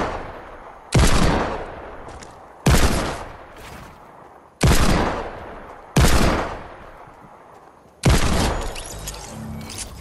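Loud gunshots ring out one at a time, each echoing away.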